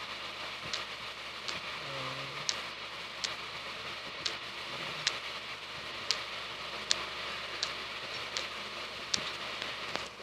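A pickaxe breaks stone blocks in a video game with short crunching clicks.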